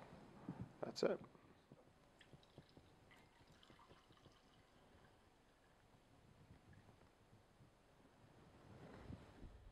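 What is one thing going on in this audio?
Juice pours and splashes into a glass.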